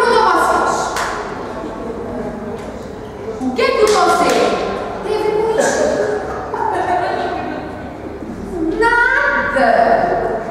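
A group of young people sing together, heard from across a hall.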